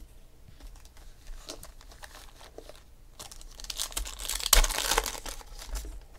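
Hands shuffle and handle packs of trading cards.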